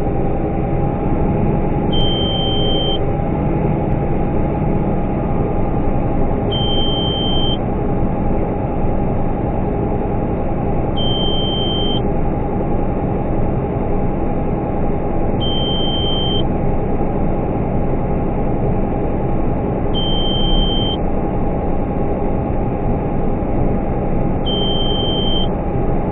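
Grain pours and rattles into a trailer.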